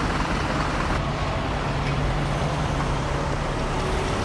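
Traffic passes on a nearby road outdoors.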